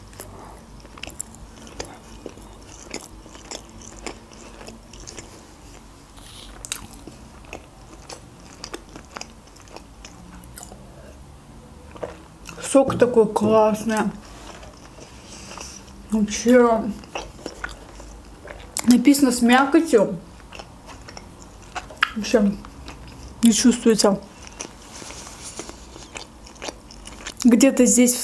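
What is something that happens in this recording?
A young woman chews food with wet, crunchy sounds close to a microphone.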